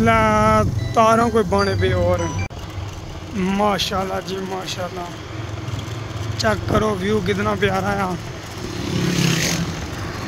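Another motorcycle passes by.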